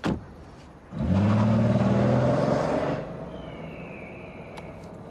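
A car engine starts and revs loudly, then settles to a low idle.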